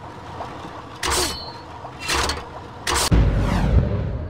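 Spinning blades whoosh past in sharp bursts.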